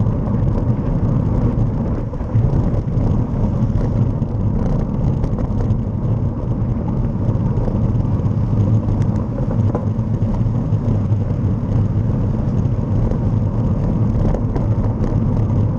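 Car engines hum nearby in slow traffic.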